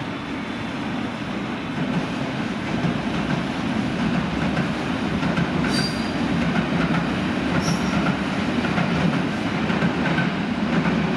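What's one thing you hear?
A train rumbles slowly along the tracks, drawing closer.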